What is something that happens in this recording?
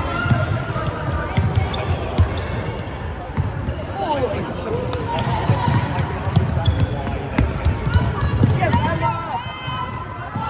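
Young women shout and call out to each other during play.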